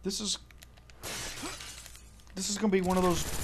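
An explosion bursts with a loud, rushing roar.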